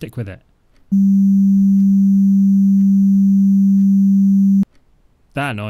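A loud, steady electronic drone hums, then cuts off.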